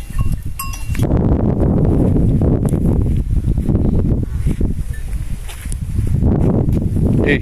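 Wind blows and rumbles against the microphone outdoors.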